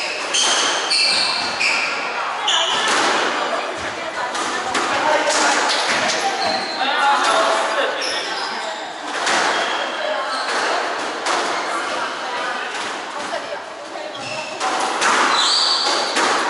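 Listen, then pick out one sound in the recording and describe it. A squash ball smacks against the walls and rackets in an echoing court.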